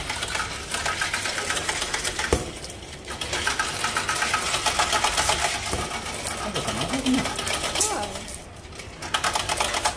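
A metal flap rattles as a hand pushes it open.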